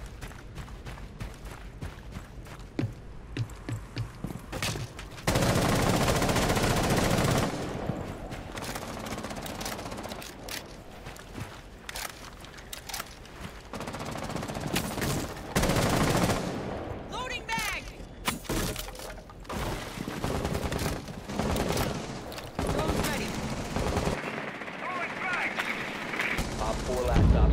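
Footsteps crunch on snow and hard floors.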